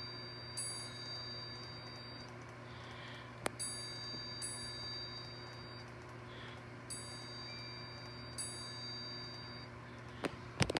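A short, bright chiming jingle plays through a small speaker and starts again several times.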